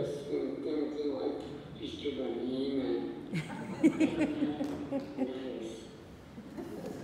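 An elderly woman speaks calmly over a loudspeaker in a large echoing room.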